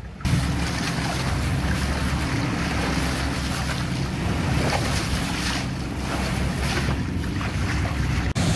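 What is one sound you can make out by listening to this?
Water splashes and rushes against the hull of a moving boat.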